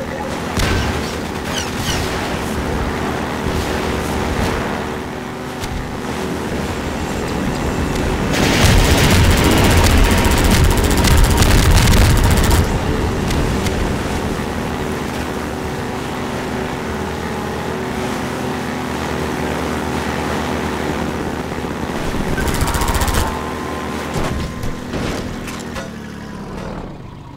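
An engine hums steadily.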